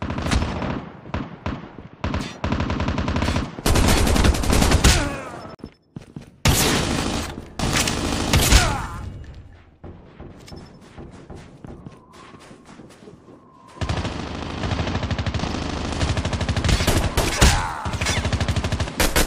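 Guns fire in rapid bursts of shots at close range.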